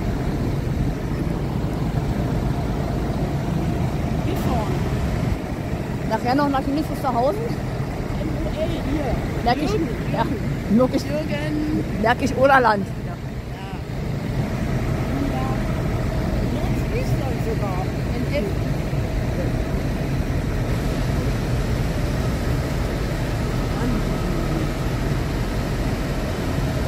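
Tractor engines idle with a steady low rumble.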